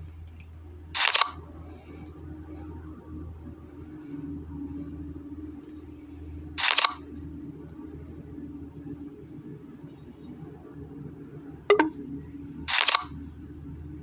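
A short whooshing card sound plays a few times.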